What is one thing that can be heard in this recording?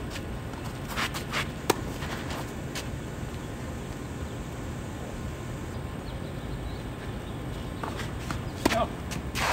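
Tennis balls are struck with rackets, sharp pops back and forth.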